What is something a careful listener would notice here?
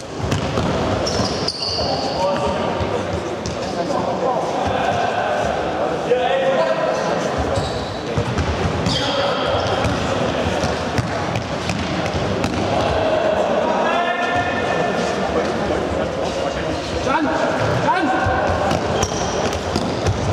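Sneakers squeak sharply on a hard indoor floor.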